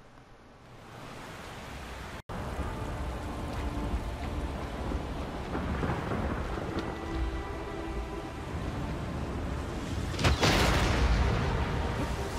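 Heavy rain pours down outdoors.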